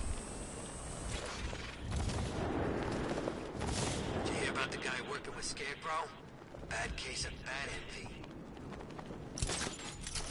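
Wind rushes past loudly during a fast glide.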